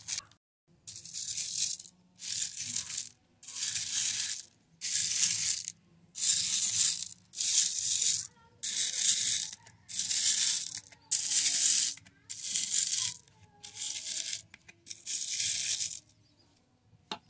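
Fingers stir and rattle small beads in a plastic box, in short bursts.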